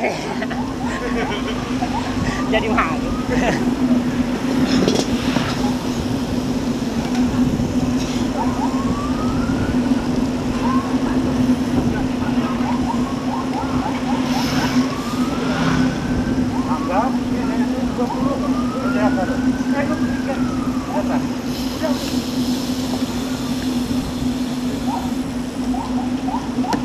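Wind rushes over the microphone.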